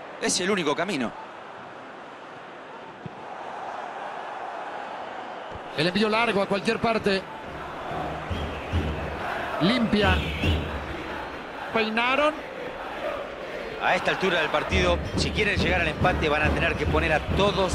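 A large stadium crowd chants and roars steadily in the distance.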